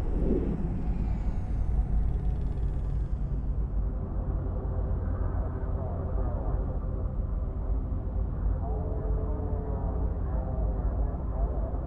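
A deep engine rumble drones steadily.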